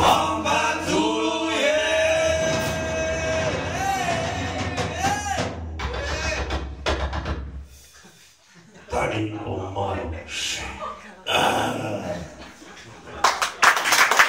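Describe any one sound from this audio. A band plays an electric guitar and a double bass.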